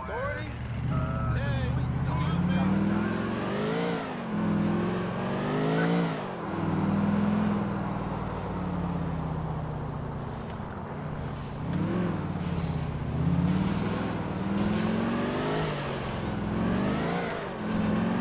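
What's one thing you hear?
A car engine revs up and down as a car drives off and turns.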